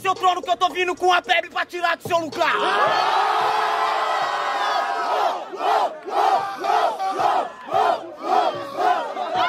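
A young man raps rapidly and forcefully up close.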